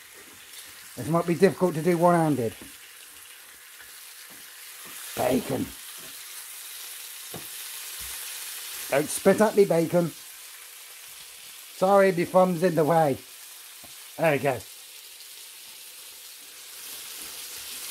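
Bacon sizzles softly in a frying pan.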